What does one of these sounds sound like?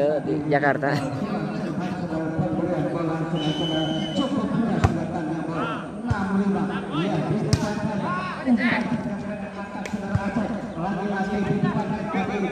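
Men shout and call out during play outdoors.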